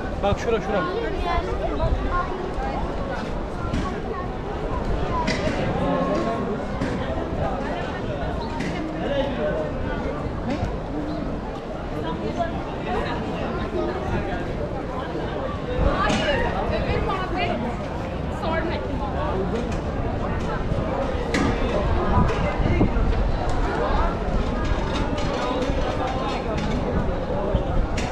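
Footsteps shuffle on a paved street.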